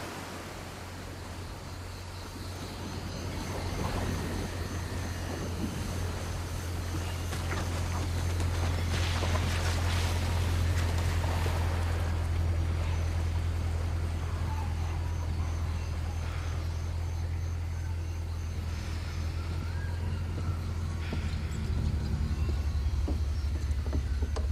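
A boat engine hums low and steady.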